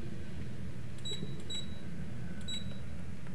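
A keypad beeps softly as buttons are pressed.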